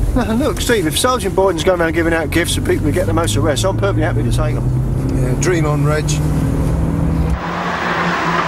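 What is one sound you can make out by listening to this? A car engine hums at a low idle.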